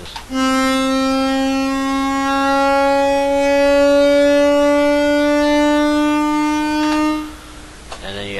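A synthesizer holds one steady, buzzy note.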